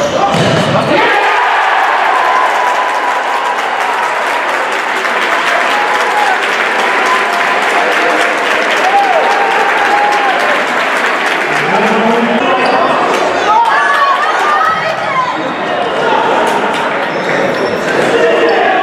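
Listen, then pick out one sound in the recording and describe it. A crowd cheers and roars loudly in an echoing hall.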